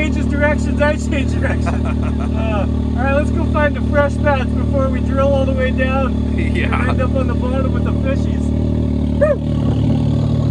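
A man speaks with animation inside a side-by-side's cab.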